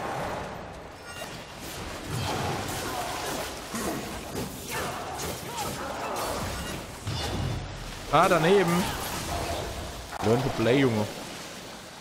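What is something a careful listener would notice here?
Swords clash and slash in game combat.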